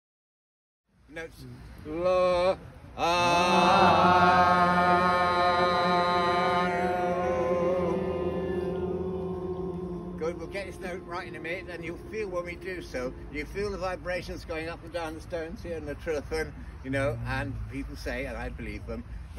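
An elderly man calls out and speaks loudly into a microphone.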